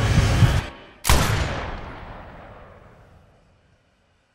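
A single gunshot bangs close by and its ringing slowly fades away.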